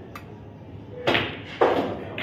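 A cue strikes a ball with a sharp knock.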